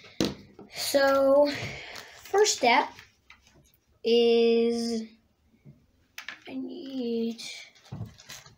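A young child speaks close by with animation.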